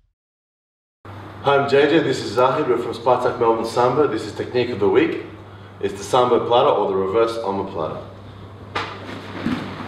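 A young man talks calmly and clearly into a nearby microphone.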